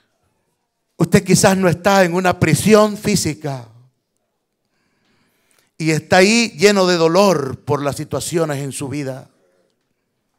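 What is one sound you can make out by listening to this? A man prays aloud with fervour through a loudspeaker.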